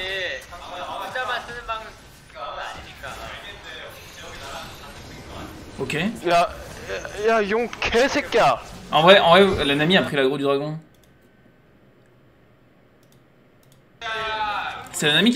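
A young man talks excitedly into a microphone, at times shouting.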